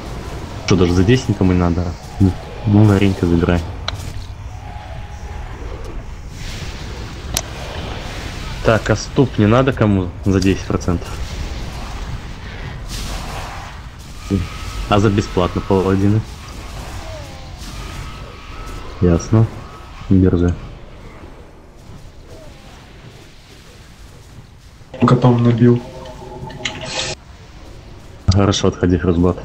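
Spell effects whoosh and crackle in a video game battle.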